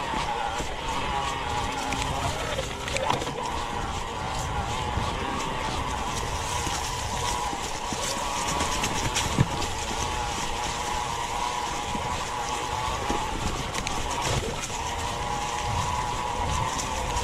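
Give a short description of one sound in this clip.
Bike tyres crunch and rattle over a dirt trail.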